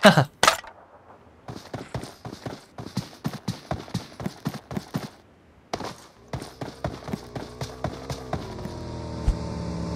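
Footsteps patter quickly over grass and rock.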